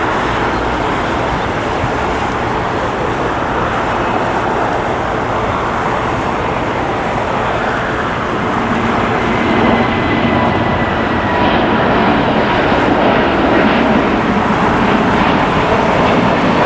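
A twin-engine jet airliner roars at full takeoff thrust as it climbs away overhead.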